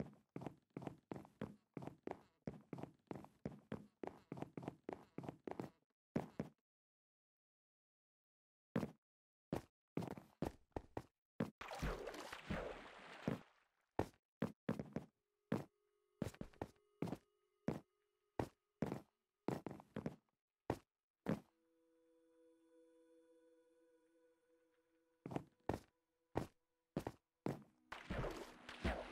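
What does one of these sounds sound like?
Footsteps tap quickly on wooden boards.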